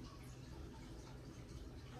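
A metal spoon scrapes inside a cup.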